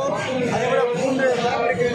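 A middle-aged man speaks loudly close by.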